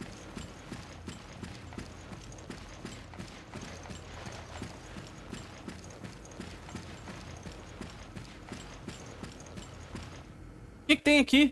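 Footsteps walk at a steady pace across a hard floor.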